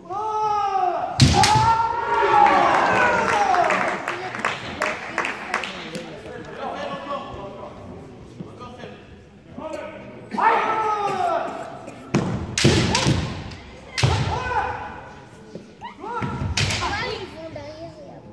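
Fencers shout loudly as they strike, echoing in a large hall.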